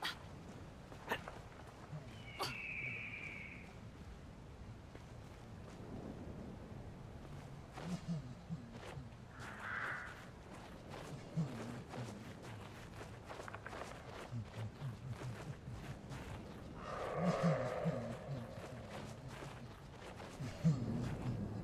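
Soft footsteps scuff on rock.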